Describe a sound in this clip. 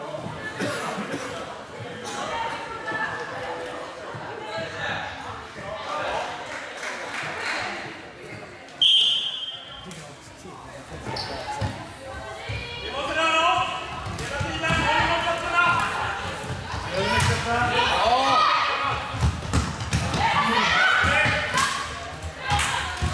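Sticks clack against a ball on a hard floor.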